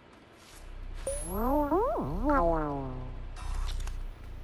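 A cat meows with a long, gliding cry.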